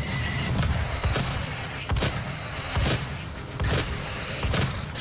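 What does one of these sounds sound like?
A shotgun fires in loud repeated blasts.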